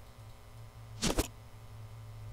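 A short electronic whoosh sounds.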